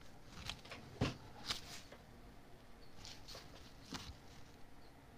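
A brush dabs and scrapes lightly on paper.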